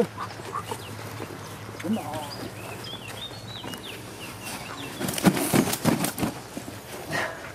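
A heavy wet sack rustles and thumps on grass.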